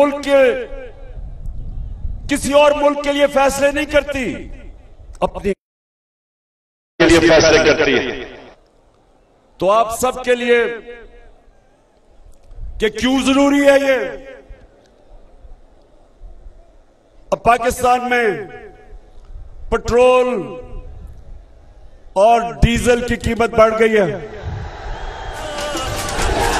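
A man speaks forcefully into a microphone, his voice booming through loudspeakers outdoors.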